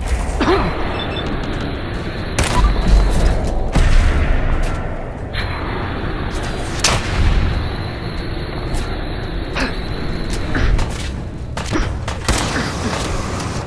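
Rifle shots crack repeatedly.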